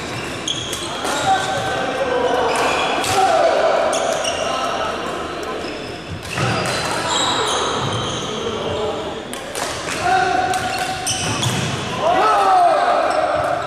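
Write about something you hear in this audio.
Rackets smack a badminton shuttlecock in a large echoing hall.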